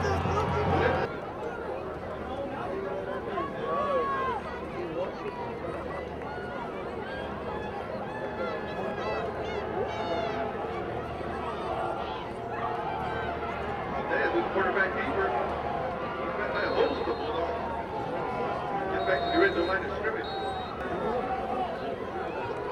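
Spectators and players nearby talk and call out.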